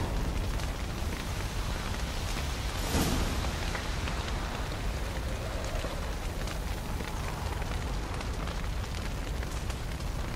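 A large fire roars and crackles.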